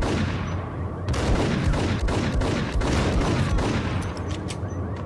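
Pistol shots fire rapidly and echo in a large concrete hall.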